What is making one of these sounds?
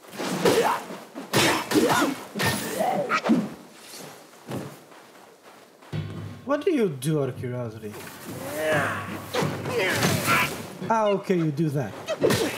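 Heavy blows thud as a staff strikes.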